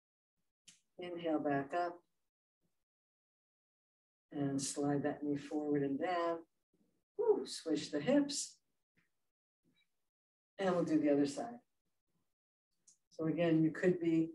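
An older woman speaks calmly, in bursts, with pauses between.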